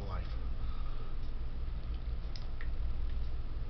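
A man gulps down a drink.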